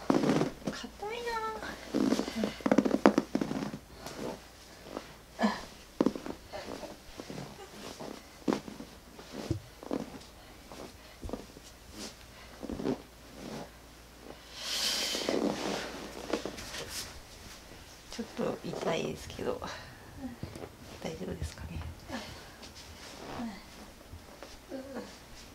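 Fabric rustles as hands press and rub on a blanket.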